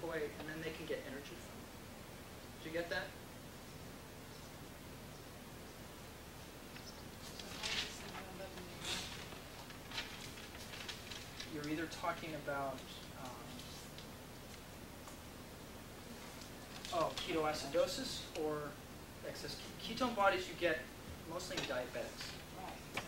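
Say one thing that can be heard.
A man lectures in a room with a slight echo, speaking in bursts with pauses.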